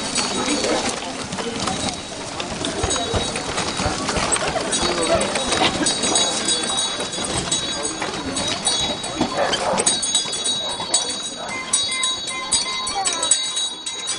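Stroller wheels roll and crunch over gravel.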